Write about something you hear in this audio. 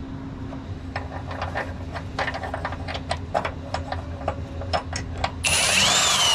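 A metal part clinks and rattles as it is fitted by hand.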